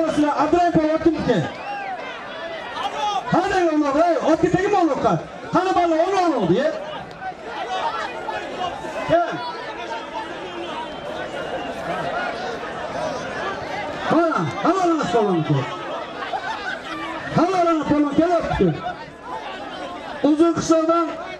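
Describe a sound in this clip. A large crowd murmurs and shouts outdoors.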